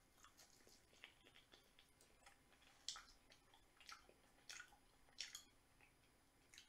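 A woman chews crunchy food close to a microphone.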